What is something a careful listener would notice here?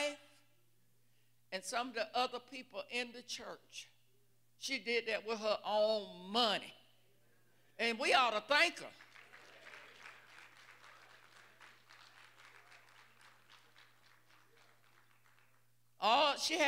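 A woman preaches with passion into a microphone, speaking in short, emphatic bursts.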